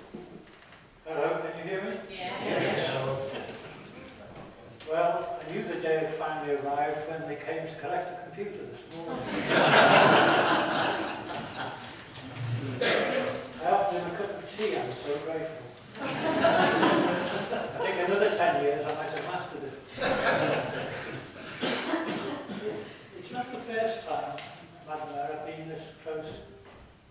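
An older man speaks steadily through a microphone in a large echoing hall.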